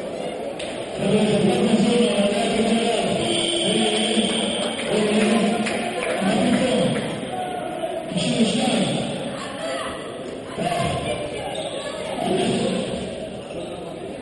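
A middle-aged man speaks loudly and forcefully, close by.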